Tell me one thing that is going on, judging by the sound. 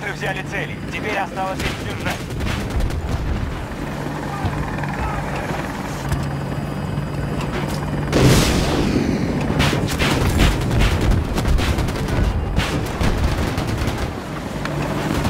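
A helicopter's rotor drones steadily.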